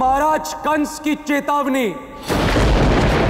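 A young man speaks with feeling, close by.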